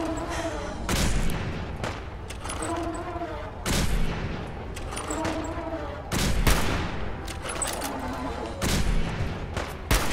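Loud rifle shots ring out every few seconds, each followed by a rumbling echo.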